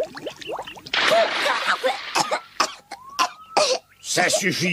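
A young boy coughs.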